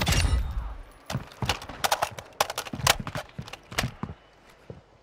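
Metal clicks and clacks as a rifle is reloaded.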